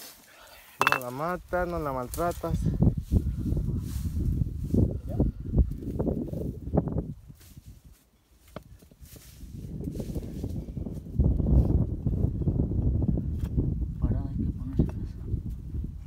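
Hands scrape and dig into dry soil.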